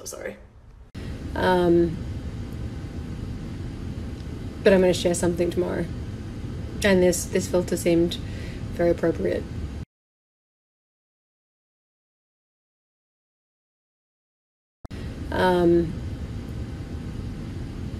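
A second young woman speaks softly close to the microphone.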